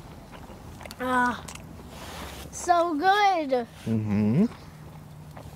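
A young boy speaks in a high, lively voice nearby.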